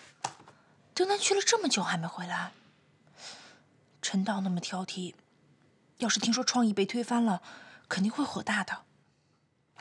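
A young woman speaks in a questioning, worried tone.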